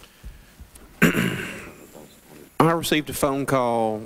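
A younger man answers into a microphone.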